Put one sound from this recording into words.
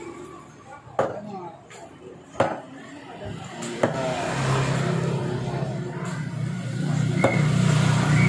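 A cleaver chops sharply through fish on a wooden board.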